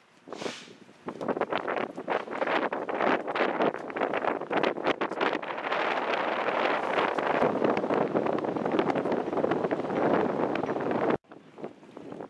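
Wind gusts roughly outdoors, buffeting loudly.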